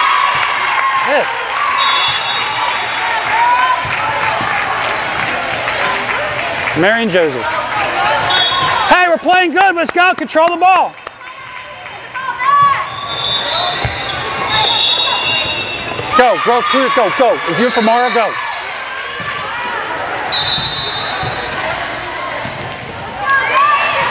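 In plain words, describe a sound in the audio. A crowd of young players and spectators chatters and calls out in a large echoing hall.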